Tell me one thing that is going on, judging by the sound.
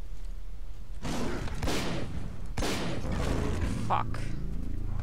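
A creature snarls as it lunges in to attack.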